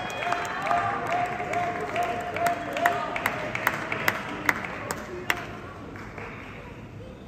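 A crowd cheers and applauds in a large hall, then quiets down.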